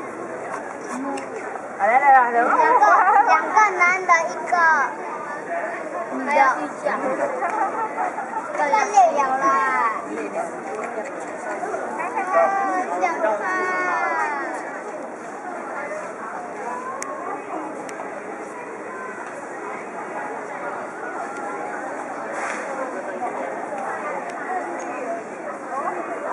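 Adult men and women chatter nearby outdoors.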